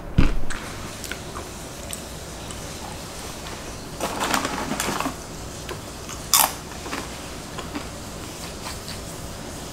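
A young woman chews food with wet sounds close to a microphone.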